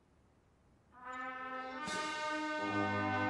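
A brass band plays loudly outdoors.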